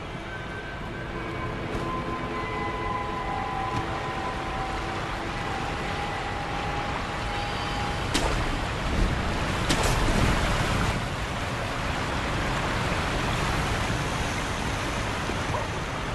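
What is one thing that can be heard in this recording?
A waterfall roars.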